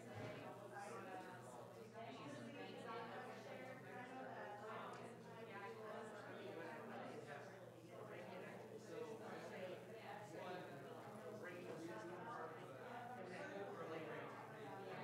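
A crowd of men and women chatter all around in a large room.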